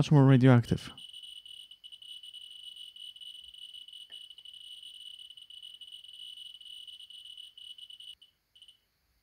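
A radiation counter crackles with rapid clicks.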